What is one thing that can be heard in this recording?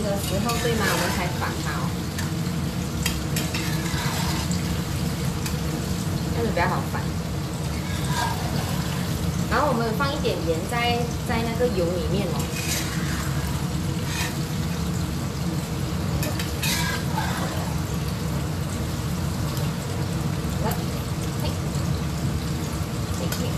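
Tofu sizzles in hot oil in a pan.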